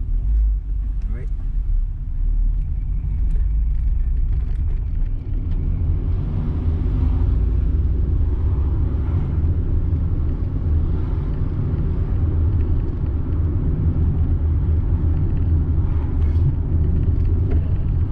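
A car engine hums steadily from inside the car while driving.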